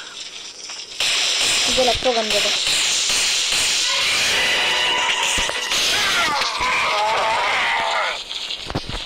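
A game weapon fires with a loud buzzing zap.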